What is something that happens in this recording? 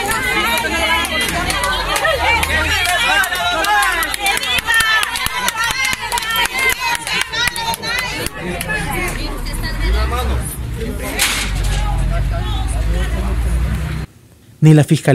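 A crowd of people shout and talk over one another close by.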